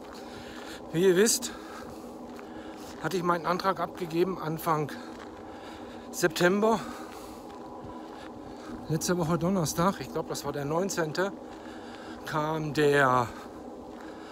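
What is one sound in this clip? A middle-aged man talks calmly and close up, in short bursts with pauses.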